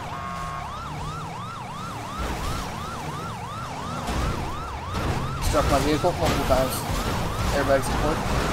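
A police siren wails in a fast repeating yelp.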